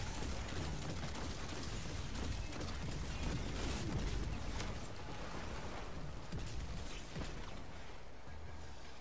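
Gunfire and energy blasts crackle in rapid bursts.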